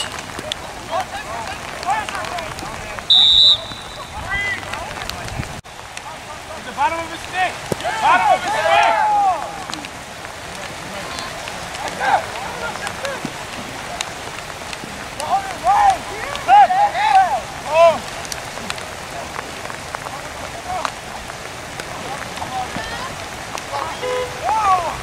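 Young men shout from across an open field outdoors.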